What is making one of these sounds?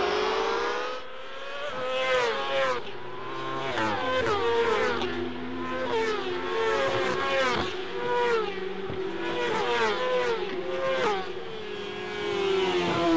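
Motorcycle engines rise and fall in pitch as riders shift gears.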